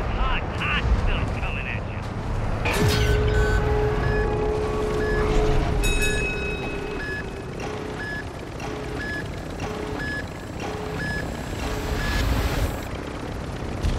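A helicopter's rotors thump overhead.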